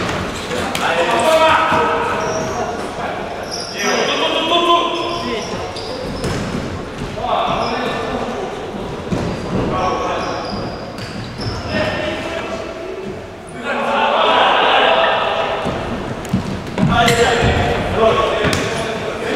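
A ball thuds as it is kicked and bounces on a hard floor.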